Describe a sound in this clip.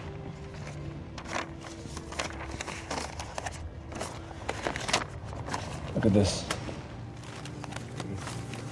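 Paper rustles as map sheets are handled.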